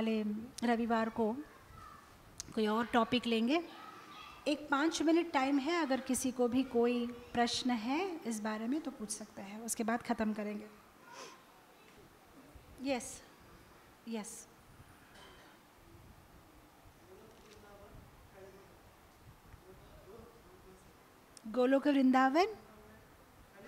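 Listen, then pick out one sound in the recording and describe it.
A woman sings in long, held phrases through a microphone.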